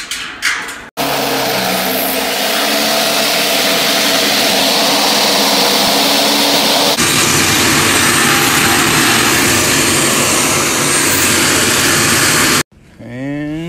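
An angle grinder whines loudly as it cuts through sheet metal.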